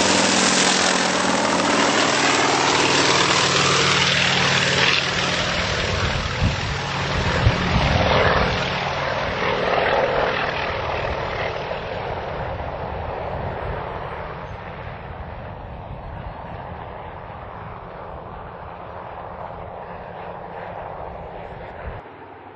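A helicopter engine roars.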